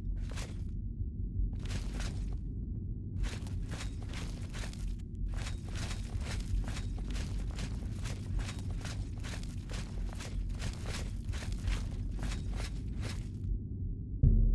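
Footsteps thud on a stone floor in a game.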